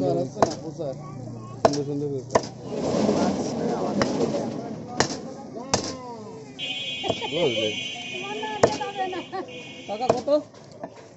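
A cleaver chops sharply into a wooden block.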